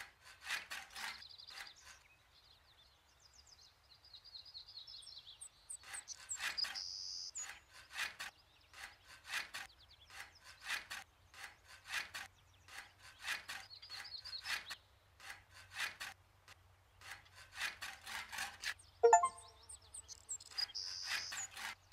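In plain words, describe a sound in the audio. A trowel scrapes plaster off a ceiling.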